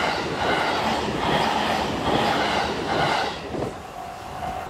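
A level crossing bell rings steadily.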